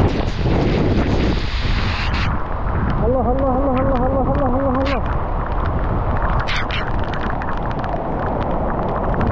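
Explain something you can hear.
Rain lashes down on leaves and grass.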